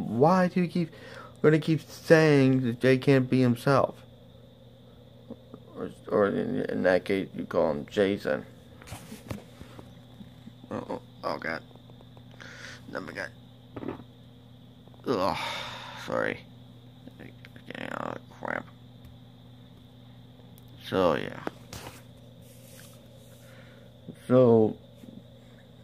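A young man talks close to a phone microphone, in short bursts with pauses.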